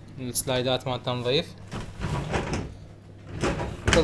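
A cabinet door handle clicks as it is pulled open.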